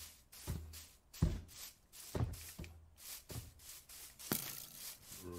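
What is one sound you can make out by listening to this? Footsteps thud softly on grass at a steady pace.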